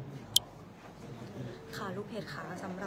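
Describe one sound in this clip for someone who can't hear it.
A young woman talks close up with animation.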